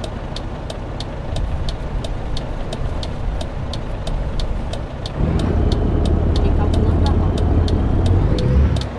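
A truck engine rumbles steadily, growing louder partway through.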